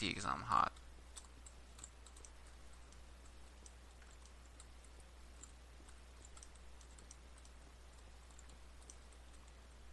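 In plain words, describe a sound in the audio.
Stone blocks crack and crumble under quick, repeated pickaxe taps.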